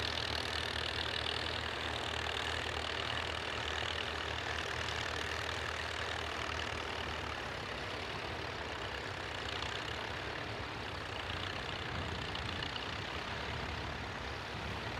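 An old tractor engine chugs steadily nearby.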